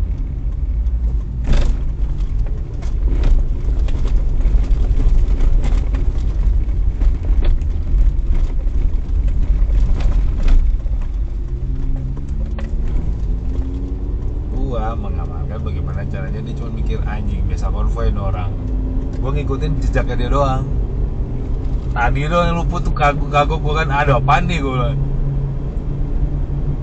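Tyres roll over a rough road with occasional bumps and knocks.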